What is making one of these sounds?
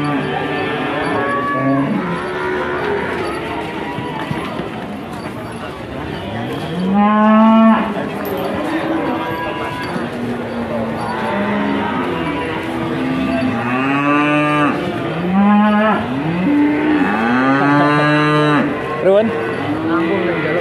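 A crowd of people chatters in the background, outdoors.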